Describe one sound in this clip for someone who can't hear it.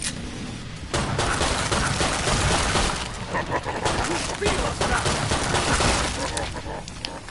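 A pistol fires sharp shots in quick bursts.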